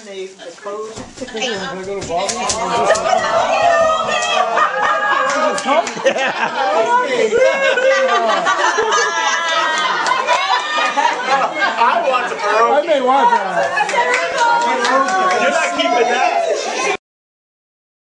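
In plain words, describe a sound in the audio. A group of men and women laugh and cheer together.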